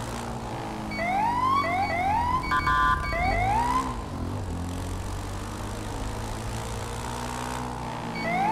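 A motorcycle engine revs up in quick rising bursts as it shifts gears.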